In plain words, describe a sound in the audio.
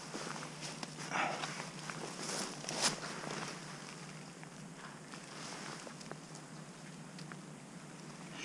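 Leaves rustle softly as a plant stem is cut and handled.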